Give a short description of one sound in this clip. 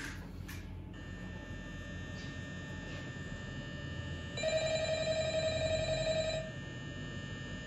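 A steady electronic hum with a high buzz plays from a game.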